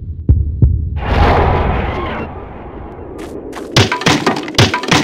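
Wooden planks crack and splinter as they break apart.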